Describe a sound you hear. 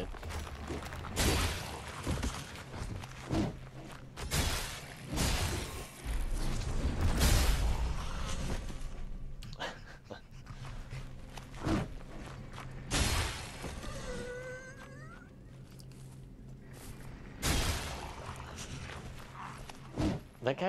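A spear swishes through the air.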